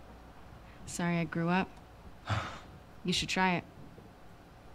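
A young woman speaks calmly and teasingly.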